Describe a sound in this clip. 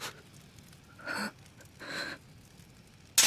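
A young woman gasps in shock.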